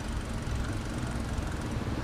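A motorbike rides by on the street nearby.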